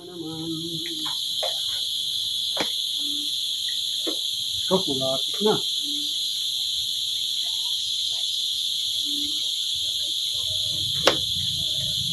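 A knife chops through a gourd on a wooden block.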